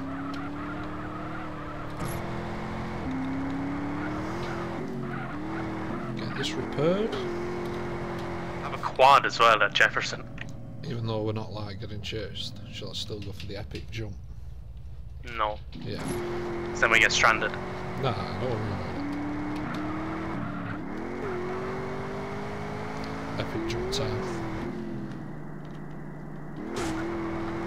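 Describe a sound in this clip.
A car engine drones and revs up and down.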